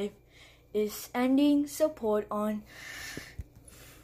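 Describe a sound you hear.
A small plastic toy is set down with a light tap on a stack of plastic cases.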